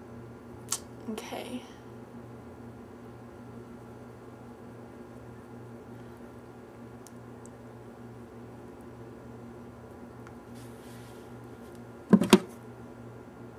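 A young woman speaks briefly and quietly close by.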